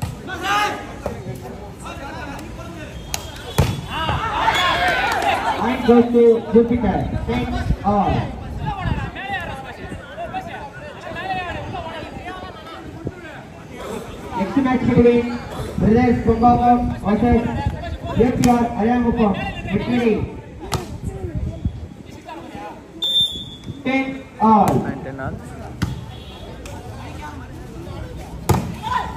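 A crowd of men cheers and shouts outdoors.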